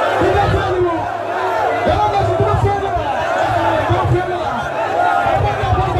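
A large crowd cheers and shouts.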